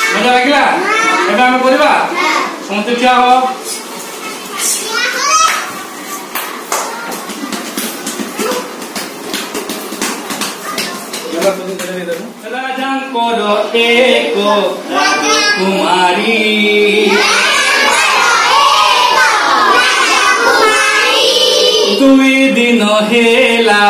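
A man sings loudly and cheerfully.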